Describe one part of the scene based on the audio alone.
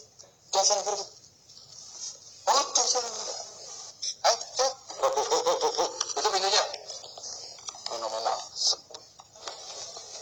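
A young man speaks with animation.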